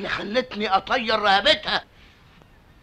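A man speaks loudly and with alarm, close by.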